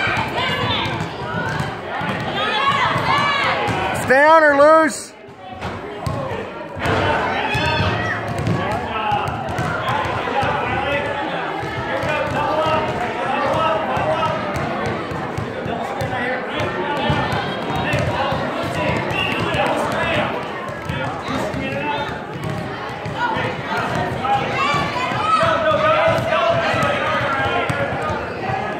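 A crowd of spectators chatters in an echoing gym.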